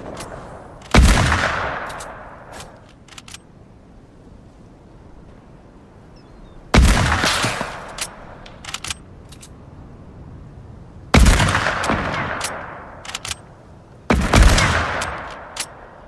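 A rifle fires loud single shots that boom and fade.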